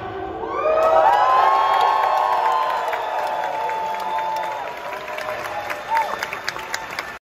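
An electric guitar plays sustained, ringing notes through loud amplifiers in a large hall.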